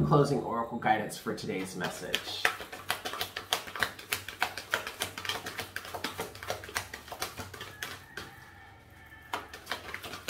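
Paper pages flutter and riffle quickly.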